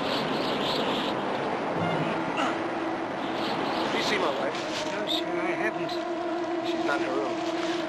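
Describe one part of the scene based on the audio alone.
A man speaks urgently and close by.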